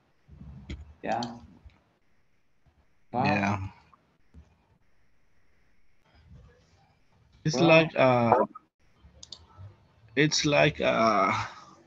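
A man speaks calmly over an online call, in short phrases with pauses.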